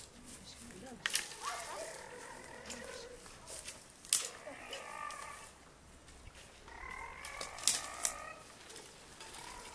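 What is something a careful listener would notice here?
A woman talks with a child outdoors.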